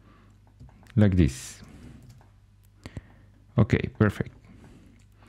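A young man speaks briefly and calmly into a close microphone.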